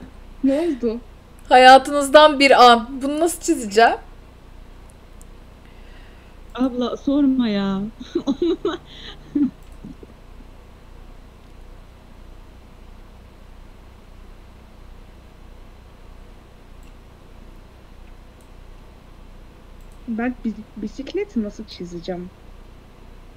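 A young woman talks and laughs with animation, close to a microphone.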